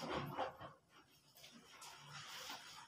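Water drips and trickles from wrung-out clothes.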